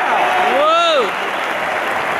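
A man sings a long final note through a loudspeaker in a large echoing arena.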